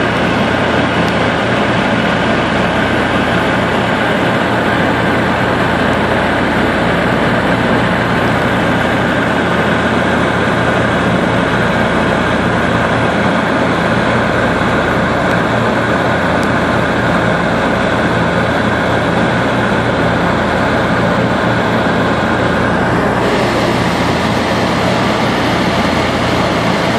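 A small propeller plane's engine drones loudly and steadily throughout.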